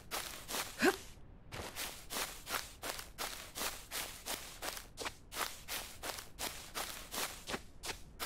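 Footsteps run quickly through grass and brush.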